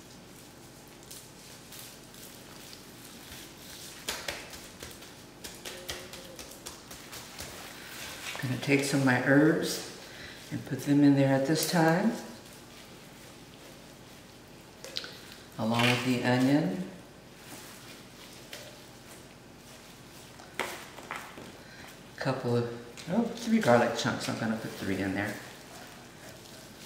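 A plastic sheet crinkles as a raw chicken is handled.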